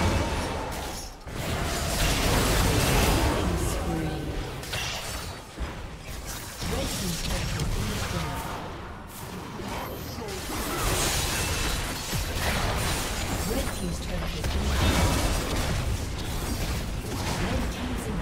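Heavy hits and blasts land again and again.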